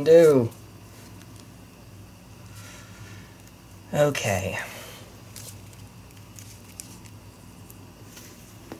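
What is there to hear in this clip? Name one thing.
Playing cards are shuffled by hand with soft riffling and tapping.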